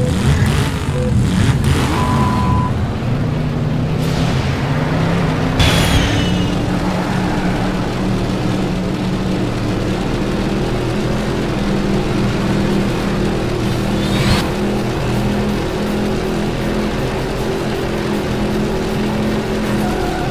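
A racing car engine roars steadily at high speed.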